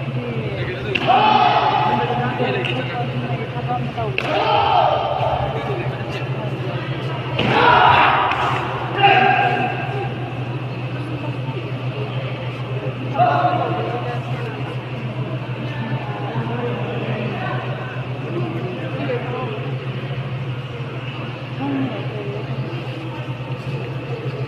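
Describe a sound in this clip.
Fighters' kicks thud against padded body guards.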